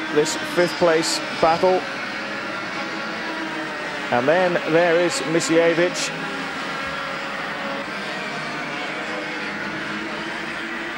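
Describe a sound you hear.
Racing kart engines buzz and whine loudly, rising and falling in pitch as they pass.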